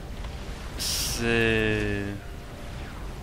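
A soft electronic tone chimes.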